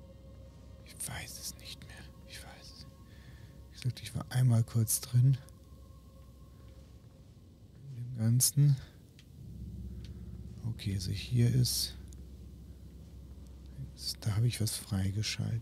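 A middle-aged man talks with animation into a close microphone, in short bursts.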